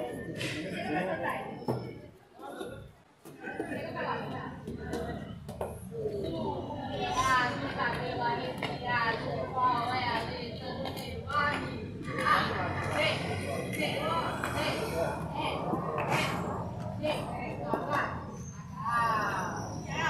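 Elderly men talk nearby with animation.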